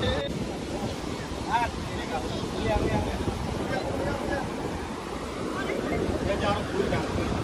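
Gentle waves wash over a rocky shore outdoors.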